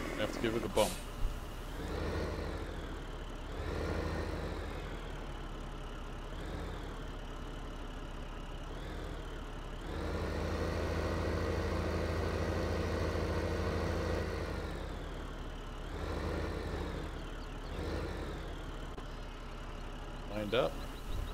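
A tractor engine rumbles steadily and revs up and down.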